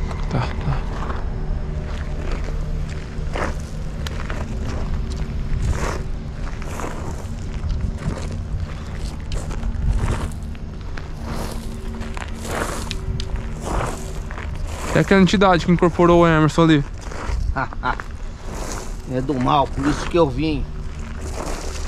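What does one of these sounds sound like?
Footsteps crunch on leaves and twigs.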